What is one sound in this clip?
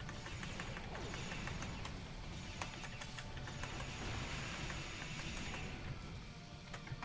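Magic spells whoosh and crackle.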